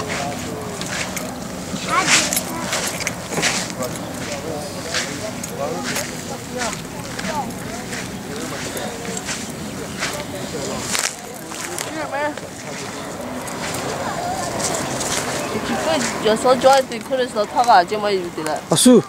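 Several men and women chatter nearby outdoors.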